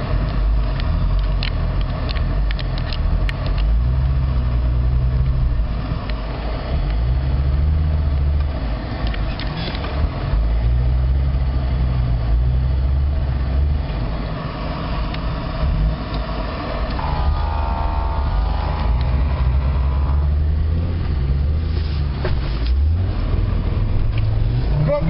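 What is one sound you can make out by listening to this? A truck engine rumbles and labors as it drives over rough ground.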